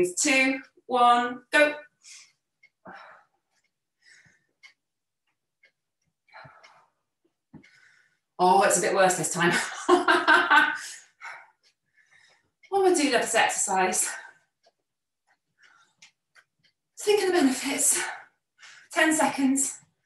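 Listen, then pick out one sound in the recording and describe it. A young woman speaks calmly and clearly into a close microphone, with pauses between phrases.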